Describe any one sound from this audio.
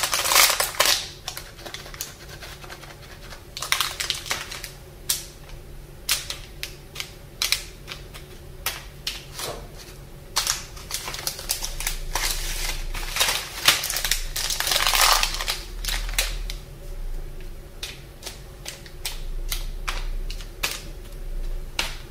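Plastic candy wrappers crinkle and rustle close by.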